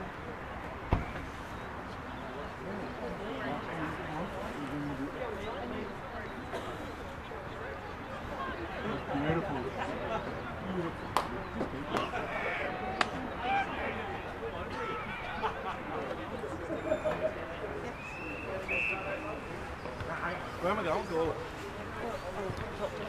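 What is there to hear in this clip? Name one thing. Men on a field shout and call out to each other outdoors.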